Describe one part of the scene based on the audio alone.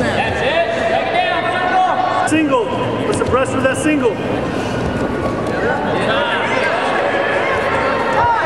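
Shoes squeak sharply on a wrestling mat.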